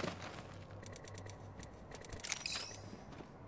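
Short electronic menu clicks sound from a video game.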